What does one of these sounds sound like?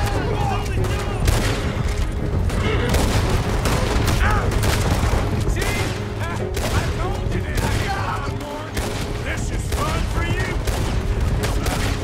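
Horses gallop with heavy, rapid hoofbeats.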